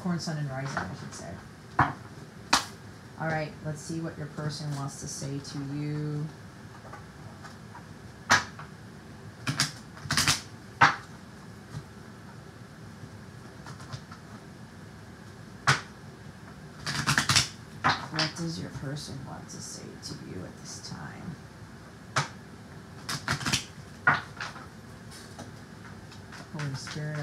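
Playing cards rustle and tap as a stack is shuffled by hand.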